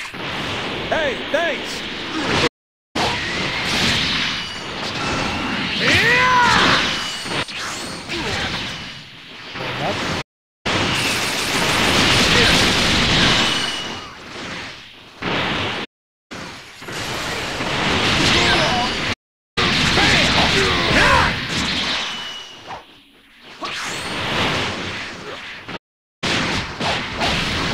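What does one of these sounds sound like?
Punches, blasts and energy beams crash and whoosh in a fast fight.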